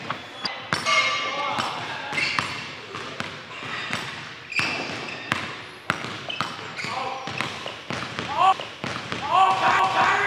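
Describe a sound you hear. A basketball bounces on a hard floor in an echoing gym.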